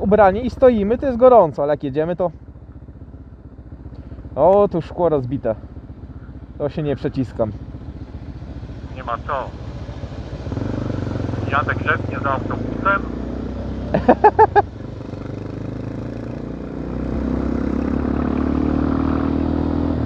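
A motorcycle engine hums steadily and revs up as the bike speeds up.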